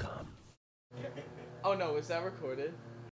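A young woman speaks with a smile.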